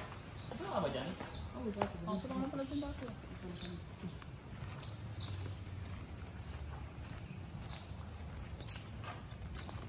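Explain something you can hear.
Footsteps scuff on paving stones.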